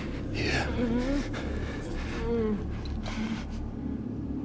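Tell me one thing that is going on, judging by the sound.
An elderly man speaks slowly in a low, hoarse voice.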